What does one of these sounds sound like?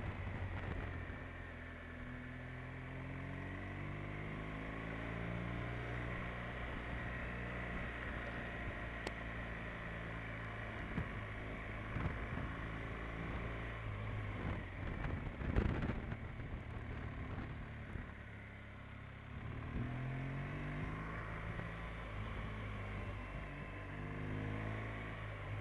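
Wind buffets past the rider.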